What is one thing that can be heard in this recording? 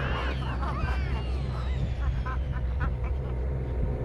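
Chimpanzees screech and hoot excitedly.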